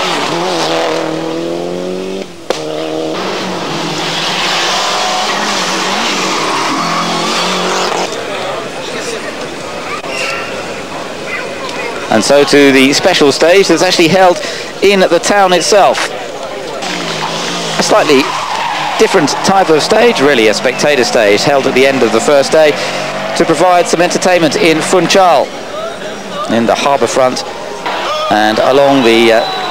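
A rally car engine revs hard and roars past.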